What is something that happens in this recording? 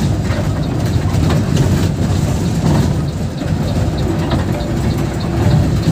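Rain patters on the windscreen.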